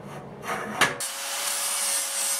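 A handheld power tool hums and whirs steadily.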